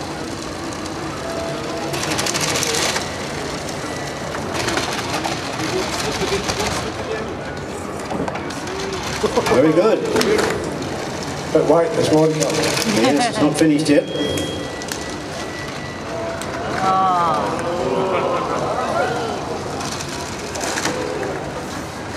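A small robot's electric motors whir as it drives.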